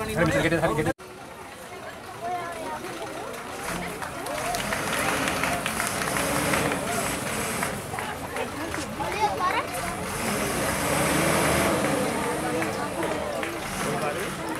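A crowd of people murmurs and calls outdoors.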